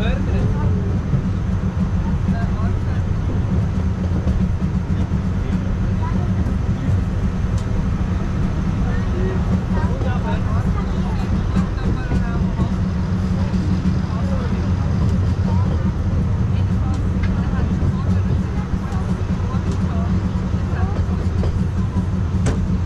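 An open train rumbles steadily along its track.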